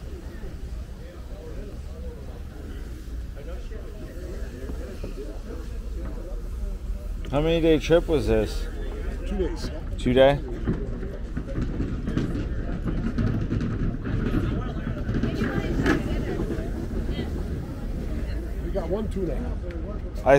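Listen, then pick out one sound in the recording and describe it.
Men chat nearby outdoors.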